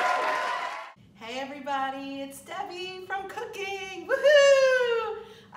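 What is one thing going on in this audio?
A woman speaks cheerfully and close by.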